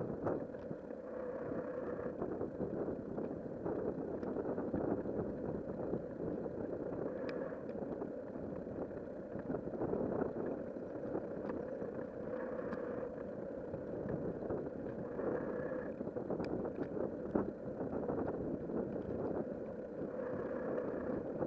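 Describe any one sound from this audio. Tyres roll steadily along smooth pavement.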